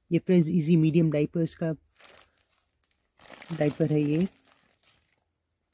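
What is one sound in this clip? A curtain's fabric rustles and brushes close by.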